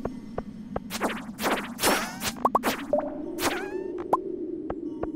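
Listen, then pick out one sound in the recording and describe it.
Rocks crack and shatter with sharp bursts.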